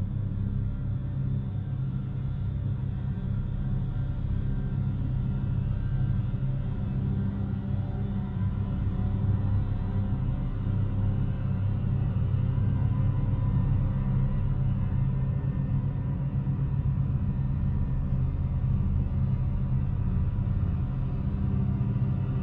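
A choir of women sings with a sustained, droning sound.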